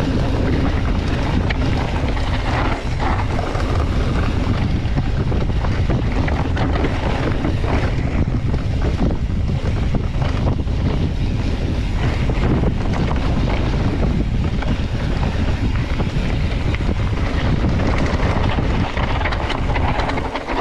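Wind buffets the microphone as the rider speeds downhill.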